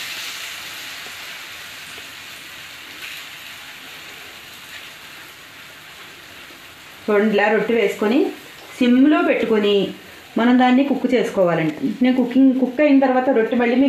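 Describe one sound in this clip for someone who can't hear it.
Oil sizzles softly in a hot pan.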